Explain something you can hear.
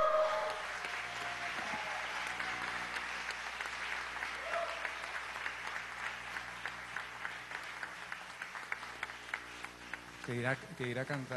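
An audience applauds and cheers in a large hall, slowly dying down.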